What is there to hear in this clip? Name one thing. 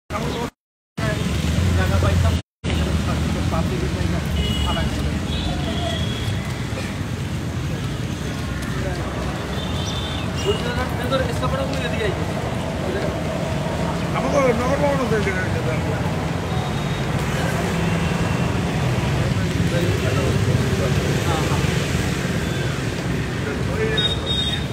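Several men talk nearby.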